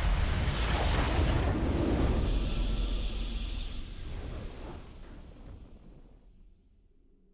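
A game's victory fanfare blares with a magical whoosh and slowly fades away.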